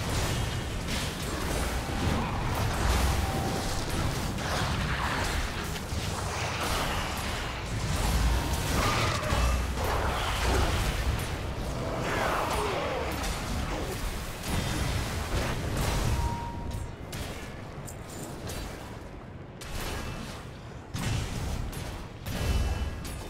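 Magic impacts thud and burst repeatedly.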